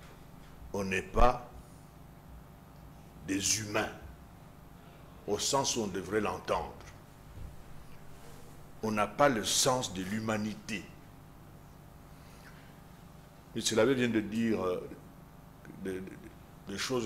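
An elderly man speaks with animation into a close microphone, in bursts with pauses.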